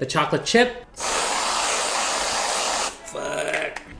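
Whipped cream hisses out of a spray can.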